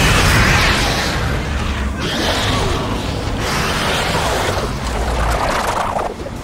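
A heavy weapon fires in bursts, with loud rumbling blasts.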